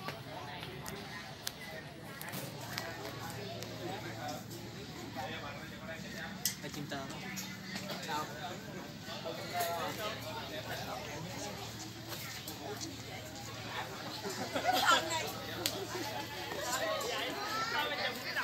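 A crowd of young people chat outdoors.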